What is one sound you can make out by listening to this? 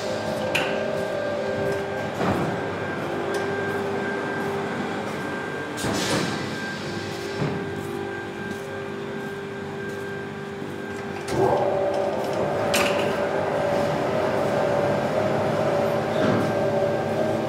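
A metal cart rattles and clanks as it is pushed.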